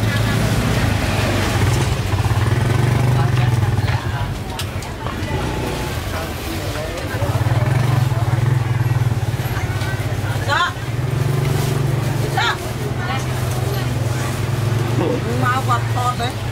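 A motorbike engine hums nearby.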